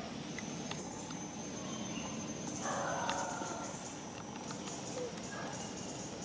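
A monkey chews and munches on food.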